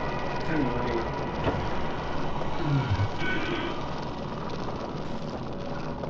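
A wooden sliding door rattles open.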